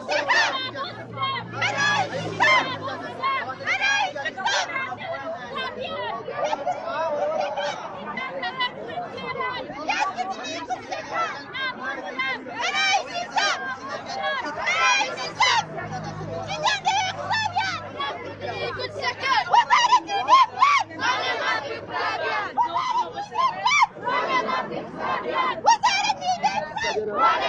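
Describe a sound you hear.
A young woman speaks into a microphone close by, talking with animation.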